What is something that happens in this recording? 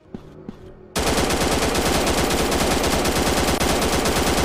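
A machine gun fires in rapid, steady bursts.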